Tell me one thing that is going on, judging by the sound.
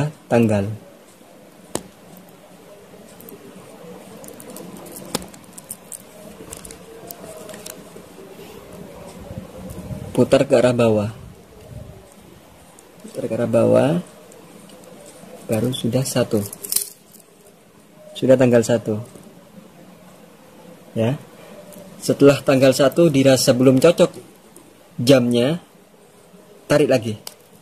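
A watch crown clicks softly as it is pulled out and turned.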